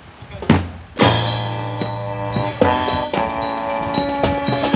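Music plays loudly over outdoor loudspeakers.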